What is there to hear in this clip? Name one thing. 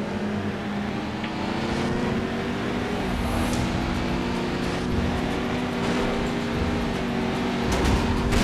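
A sports car engine roars and revs, rising in pitch as it speeds up.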